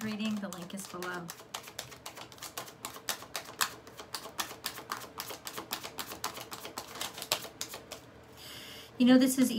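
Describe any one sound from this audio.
Cards shuffle rapidly in a woman's hands.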